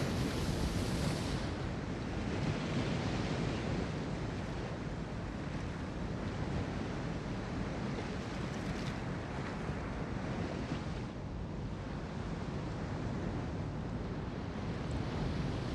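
A ship's engine rumbles low and steady.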